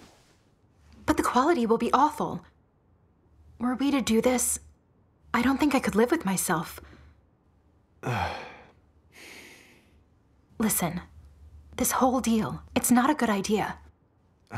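A woman speaks close by in an upset, pleading voice.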